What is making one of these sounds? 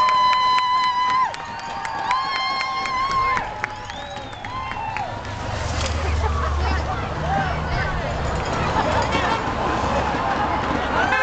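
A crowd cheers and shouts along the roadside.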